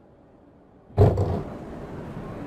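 Train doors slide open with a loud thump.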